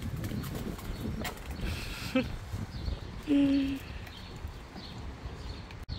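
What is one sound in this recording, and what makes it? A toddler's plastic ride-on toy rolls and rattles over paving stones.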